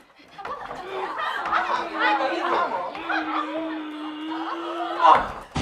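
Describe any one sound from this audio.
Several young women call out and cheer with excitement.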